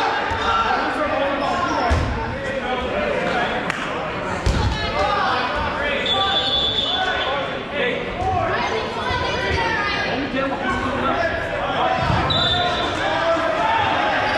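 Many players shout and call out across a large echoing gym.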